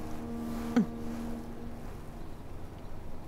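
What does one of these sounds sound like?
A middle-aged woman murmurs softly close by.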